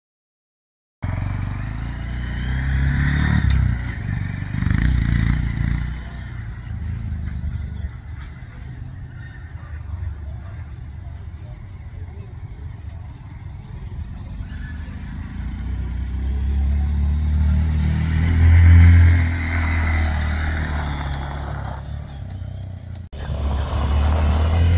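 A small motorbike engine hums and putters.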